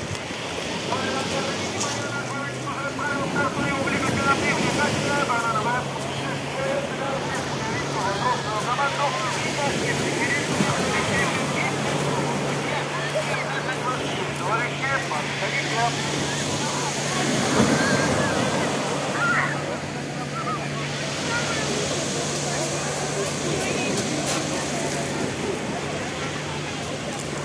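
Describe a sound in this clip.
A crowd of people chatter and shout across a busy beach, outdoors.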